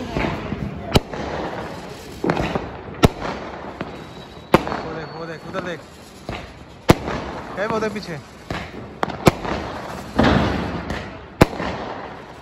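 Fireworks burst with loud sharp bangs outdoors.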